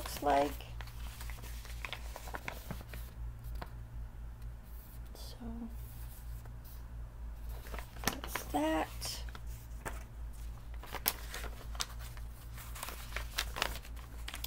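Paper rustles and crinkles in handling.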